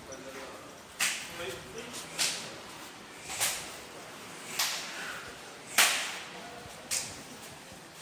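Sharp slaps of palms on skin ring out in an echoing hall.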